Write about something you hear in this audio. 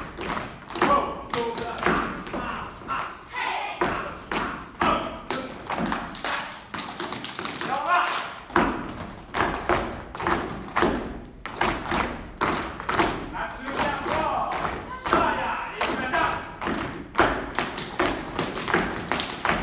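Feet stomp and shuffle on a wooden stage.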